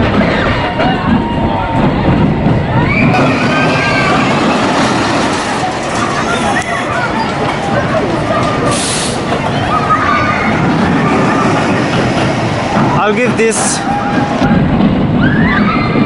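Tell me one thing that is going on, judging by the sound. Coaster cars rumble and clatter along a track.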